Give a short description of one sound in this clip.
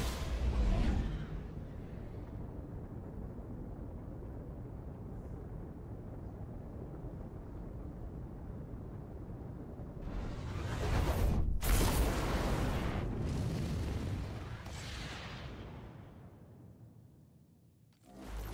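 A spacecraft roars with a deep, steady rumble as it rushes through space.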